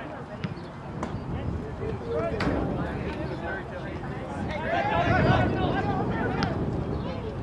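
Young players shout to each other outdoors across an open field.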